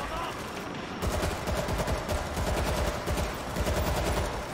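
A rifle fires in rapid bursts in a hall that echoes.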